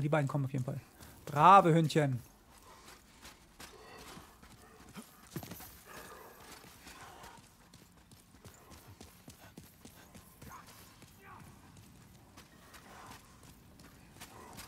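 Footsteps run over stone.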